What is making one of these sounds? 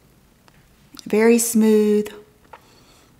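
A woman speaks briefly and clearly, close to the microphone.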